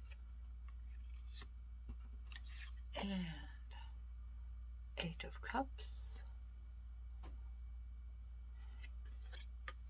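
Playing cards rustle and slide softly as they are picked up and handled.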